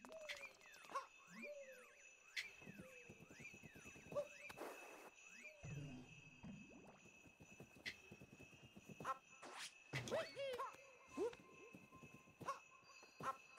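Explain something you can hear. Video game sound effects chirp and jingle.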